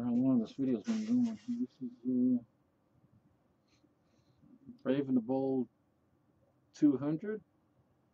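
Paper rustles and a stiff card sleeve slides out of a box.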